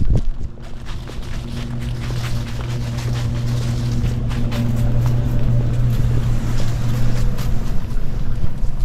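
A truck engine rumbles close by as the truck passes slowly.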